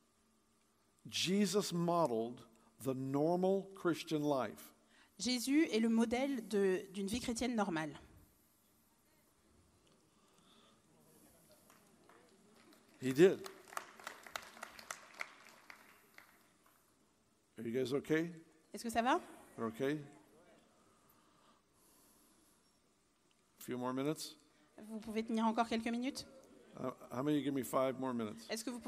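An elderly man speaks calmly and expressively through a microphone.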